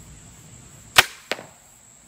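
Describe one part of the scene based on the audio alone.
A crossbow fires with a sharp snap.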